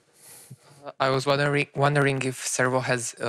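A second man speaks into a microphone.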